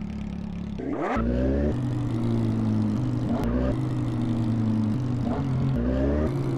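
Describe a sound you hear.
A motorcycle engine revs up and roars as the bike rides off.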